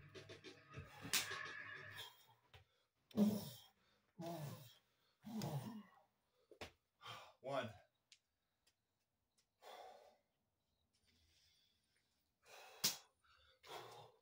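Feet thud on a floor mat as a man jumps.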